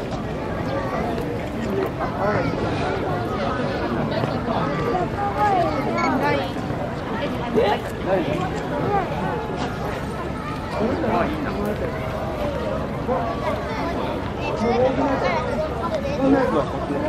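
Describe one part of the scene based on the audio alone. Pandas crunch and chew bamboo stalks up close.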